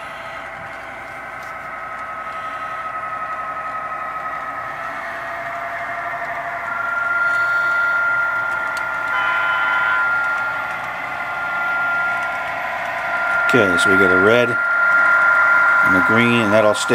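A model train engine hums steadily and grows louder as it approaches.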